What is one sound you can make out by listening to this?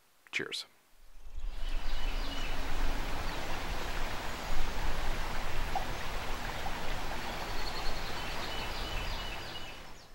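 A river flows steadily.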